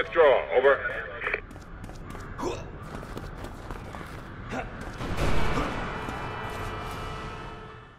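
Footsteps run on hard ground.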